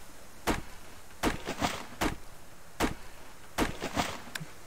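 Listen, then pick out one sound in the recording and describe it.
An axe chops into a tree trunk with sharp knocks.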